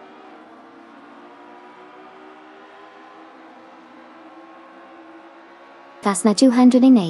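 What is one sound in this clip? Racing car engines drone and whine as the cars speed along.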